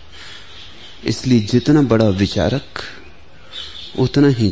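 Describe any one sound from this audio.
An elderly man speaks slowly in a deep, calm voice.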